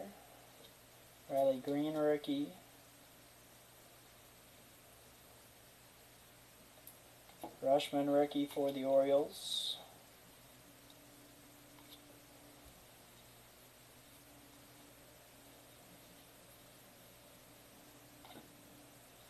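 Trading cards rustle softly as they are flipped through by hand.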